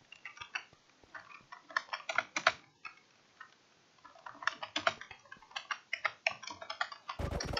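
Keys clack on a computer keyboard.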